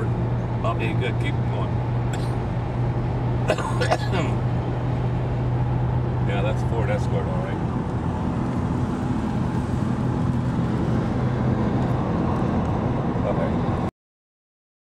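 A car engine drones steadily from inside a moving car.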